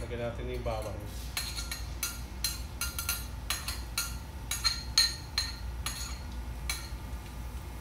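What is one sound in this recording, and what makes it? A spoon scrapes and taps against a plate.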